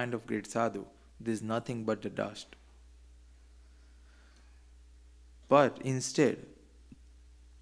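A man speaks calmly into a close microphone, in short phrases with long pauses.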